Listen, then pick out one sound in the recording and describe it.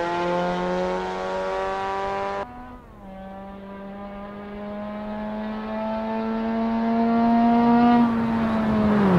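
A car engine revs hard, drops in pitch at a gear change, then climbs steadily again.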